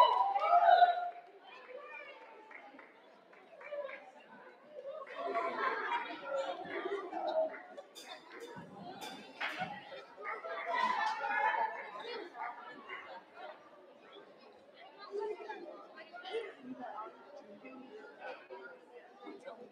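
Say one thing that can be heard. Teenagers talk and laugh nearby in an echoing hall.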